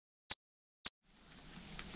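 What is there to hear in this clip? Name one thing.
A bat gives two short, sharp, high chirps.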